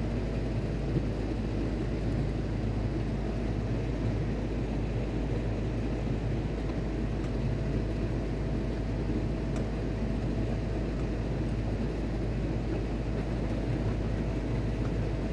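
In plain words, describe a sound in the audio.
A cooling fan hums steadily.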